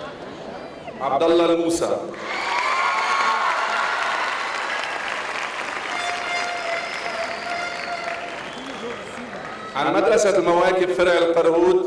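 A man speaks steadily over a loudspeaker in a large echoing hall.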